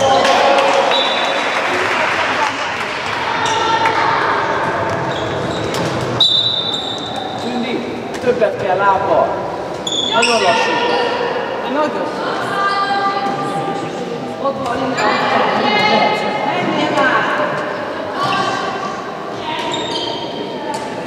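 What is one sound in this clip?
Young girls shout and call out to each other in an echoing hall.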